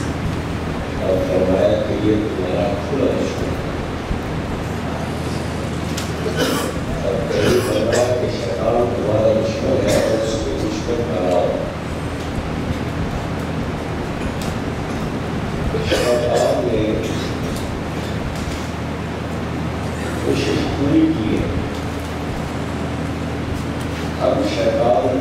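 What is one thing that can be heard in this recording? A middle-aged man speaks calmly into a microphone, with long pauses.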